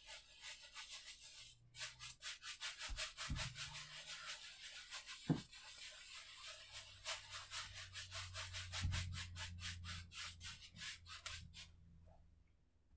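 A brush scrubs rapidly against a canvas.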